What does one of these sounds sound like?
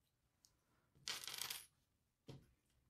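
Game tokens clatter on a wooden table.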